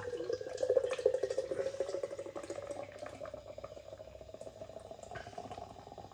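Beer pours from a bottle into a glass, glugging and fizzing.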